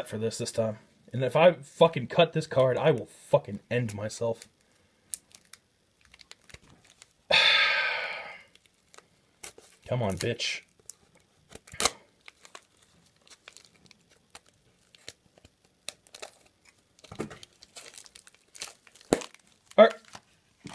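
Tape crinkles and rustles as hands handle a wrapped pack.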